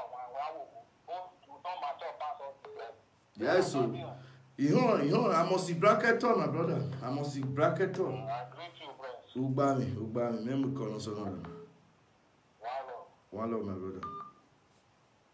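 A man speaks with animation close to a phone microphone.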